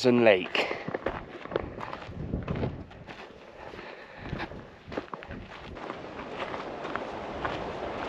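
Footsteps crunch on a rocky gravel path.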